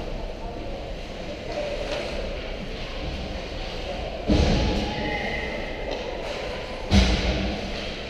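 Ice skates scrape and hiss across the ice in a large echoing hall.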